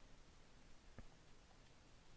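A short electronic beep sounds from a game menu.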